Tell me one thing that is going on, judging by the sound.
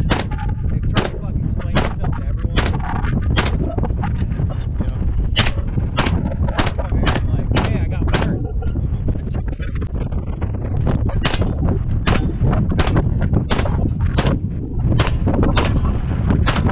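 Gunshots crack one after another outdoors, with short pauses between bursts.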